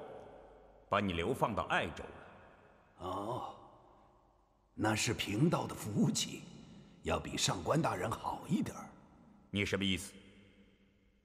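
An elderly man speaks calmly in a low voice.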